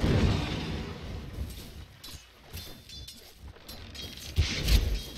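Weapons clash and spells crackle in a skirmish.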